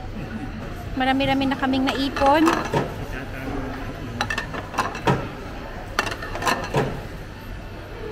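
Ceramic plates clink and clatter on a table.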